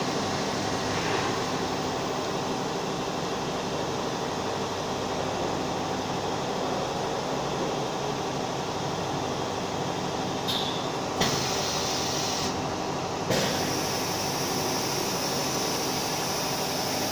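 A machine hums and whirs steadily nearby.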